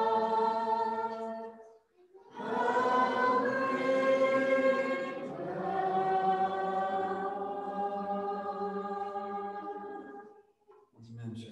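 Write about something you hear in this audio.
An electric guitar plays along with the singing.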